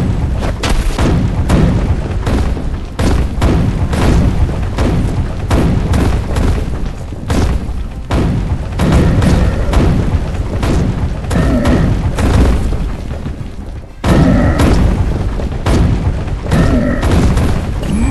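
Swords and clubs clash and strike in a rapid, constant battle.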